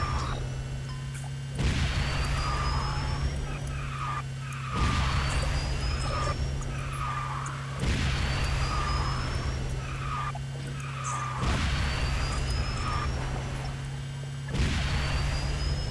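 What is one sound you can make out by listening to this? A racing car engine hums steadily at high speed.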